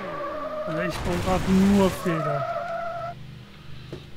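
A car engine roars and then drops in pitch as it slows.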